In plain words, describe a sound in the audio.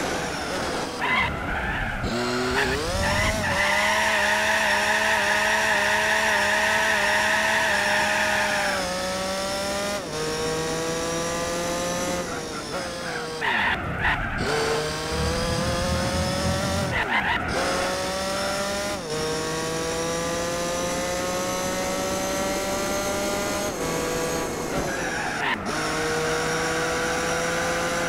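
Tyres squeal through tight corners.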